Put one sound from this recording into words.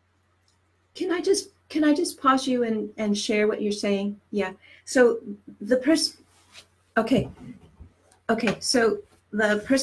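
A middle-aged woman speaks with animation, close to a microphone.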